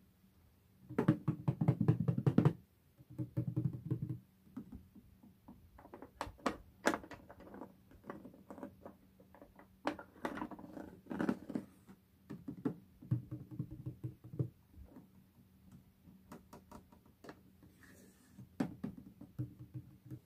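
A metal handle clicks and rattles against a wooden box.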